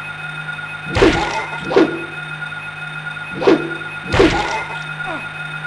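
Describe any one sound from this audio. A metal pipe strikes a creature with heavy, wet thuds.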